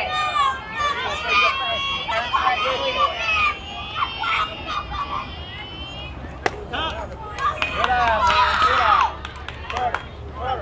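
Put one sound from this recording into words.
Young players shout and cheer across an open field.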